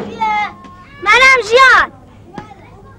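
A young girl calls out loudly.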